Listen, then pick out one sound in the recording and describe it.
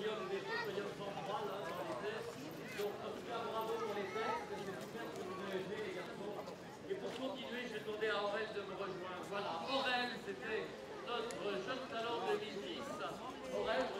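Sandals slap on paving stones as people walk past.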